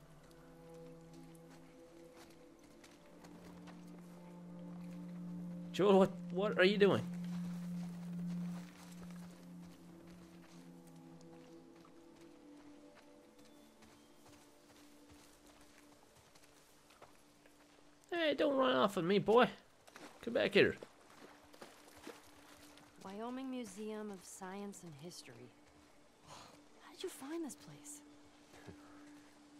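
Footsteps rustle through grass and over stones.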